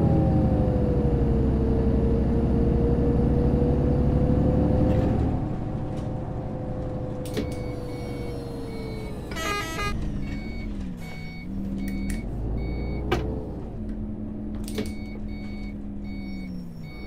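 A bus engine hums and drones steadily, easing down as the bus slows.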